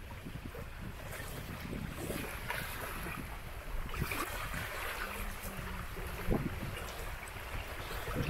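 A fishing net rustles as hands pull at it.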